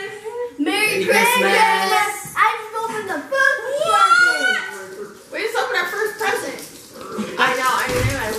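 A girl laughs and talks with delight.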